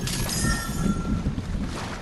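Water splashes as a figure wades through it in a game.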